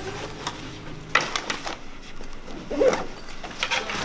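A backpack's fabric rustles as it is packed and zipped.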